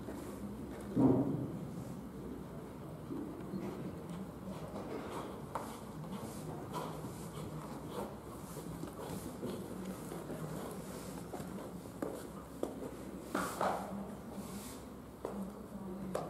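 A horse's hooves thud softly on sand as it canters and trots.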